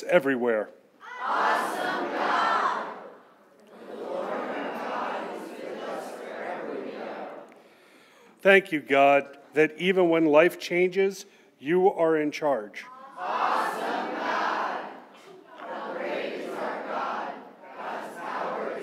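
A congregation of many men and women recites together in unison.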